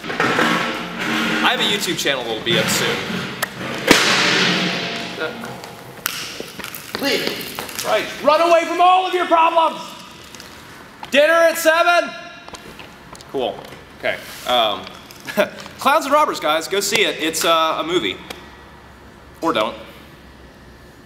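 A young man speaks calmly and close by, in a large echoing hall.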